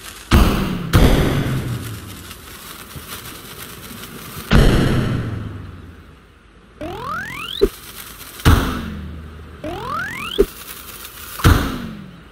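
A cartoon cannon fires with deep booming blasts.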